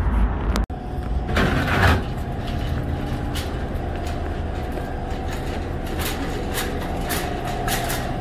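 A metal shopping cart rattles as it rolls along.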